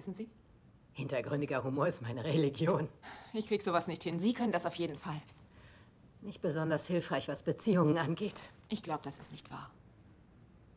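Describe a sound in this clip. A woman speaks calmly and warmly nearby.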